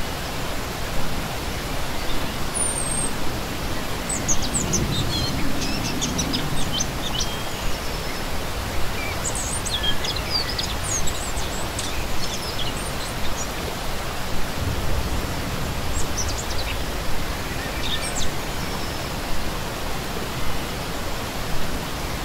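A shallow stream rushes and splashes steadily over rocks.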